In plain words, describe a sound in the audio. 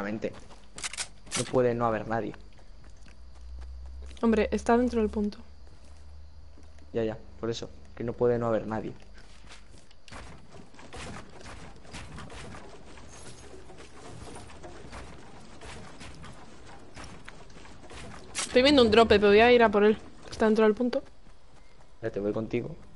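Footsteps run over grass and metal.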